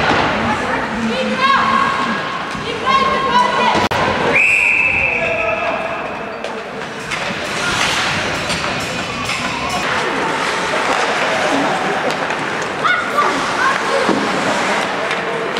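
Young players shout from close by.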